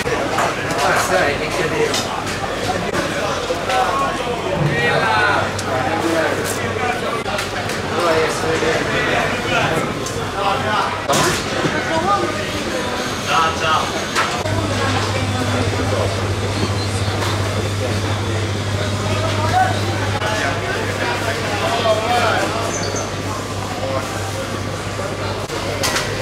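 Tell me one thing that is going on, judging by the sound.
Many voices chatter outdoors in a busy market.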